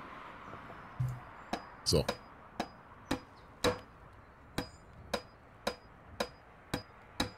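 A hammer taps sharply on brick in quick, regular blows.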